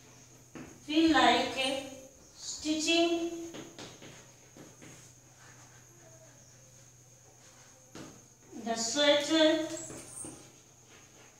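A woman speaks slowly and clearly nearby, as if dictating.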